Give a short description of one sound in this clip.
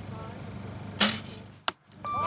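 A bowstring twangs sharply as an arrow is shot.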